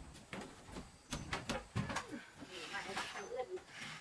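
A metal stove clatters as it is set down.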